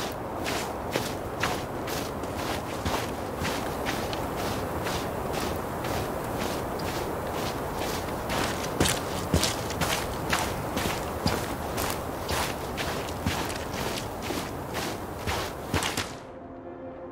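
Footsteps crunch steadily through snow.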